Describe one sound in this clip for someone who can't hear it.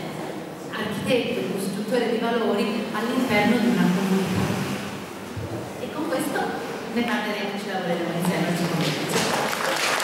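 A woman speaks calmly into a microphone in an echoing hall.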